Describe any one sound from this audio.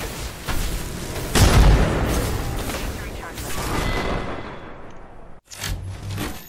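Explosions and fire roar close by.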